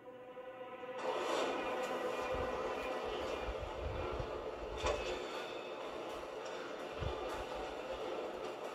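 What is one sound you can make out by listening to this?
Game sound effects and ambience play loudly from a television speaker.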